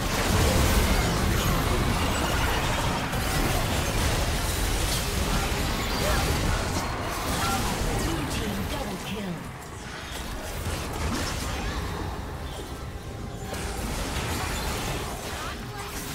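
Spells and attacks crackle, whoosh and clash in a fast video game battle.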